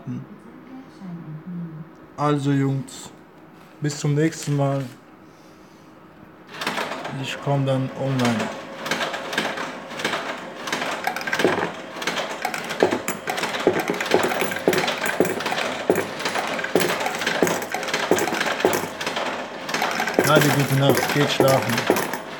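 A slot machine plays short electronic jingles.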